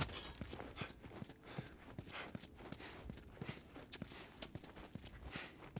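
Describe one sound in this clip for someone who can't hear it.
Footsteps tread steadily on a hard floor, with debris crunching underfoot.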